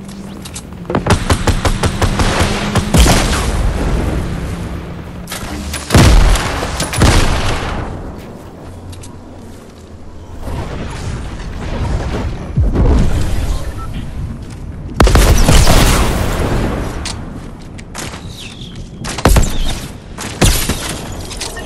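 A video game gun fires rapid shots.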